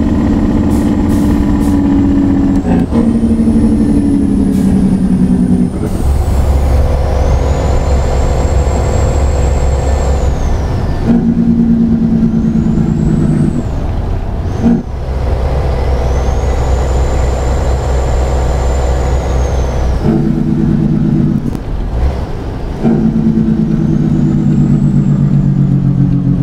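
A truck's diesel engine roars steadily and changes pitch as the gears shift.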